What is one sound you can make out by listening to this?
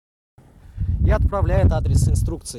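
A young man speaks calmly, close by, outdoors.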